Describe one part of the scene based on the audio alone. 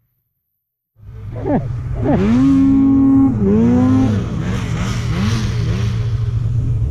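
A snowmobile engine revs loudly nearby.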